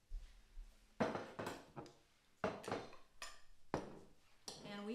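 A knife cuts food on a board.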